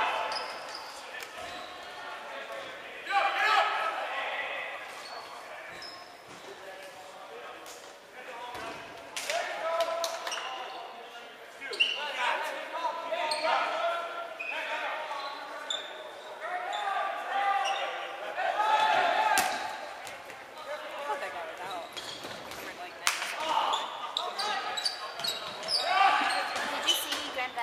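Teenage boys and girls chatter and call out in an echoing hall.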